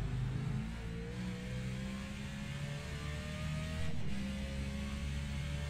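A race car engine roars steadily, its pitch slowly rising, then dipping briefly at a gear change before climbing again.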